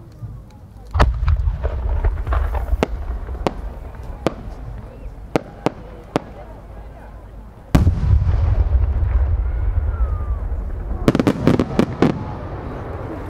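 Fireworks crackle and pop.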